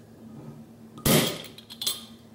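A swing-top bottle pops open.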